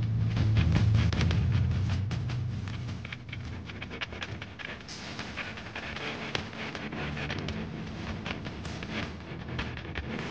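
A keyboard plays chords.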